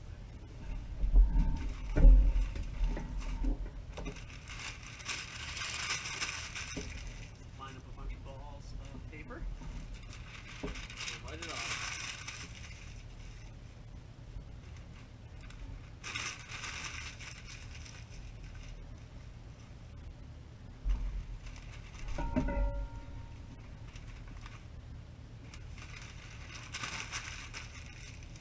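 Newspaper rustles and crinkles as it is crumpled.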